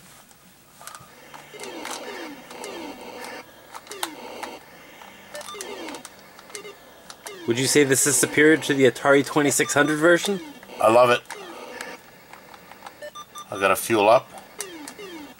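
An electronic video game hums and beeps as it plays.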